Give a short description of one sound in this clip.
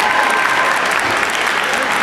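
Audience members clap their hands.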